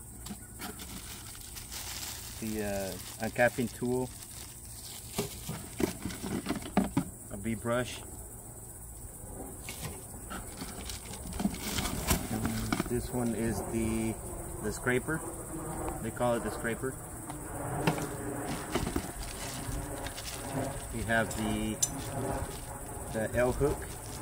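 Cardboard and plastic rustle and crinkle as items are handled.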